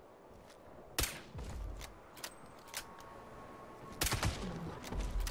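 A gun fires loud single shots.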